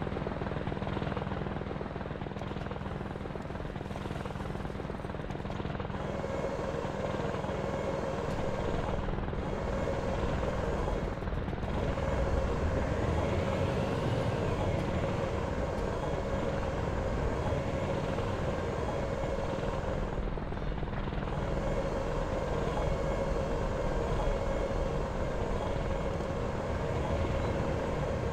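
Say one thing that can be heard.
Tank tracks clank and grind as the tank drives over the ground.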